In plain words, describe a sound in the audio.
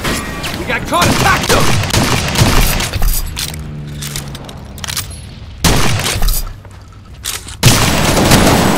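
Rifle shots crack loudly, one at a time.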